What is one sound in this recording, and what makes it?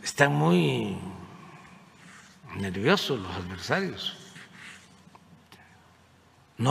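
An elderly man speaks slowly into a microphone, with pauses.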